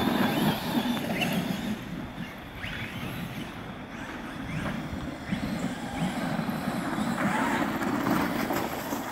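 Plastic tyres crunch and spin on icy snow.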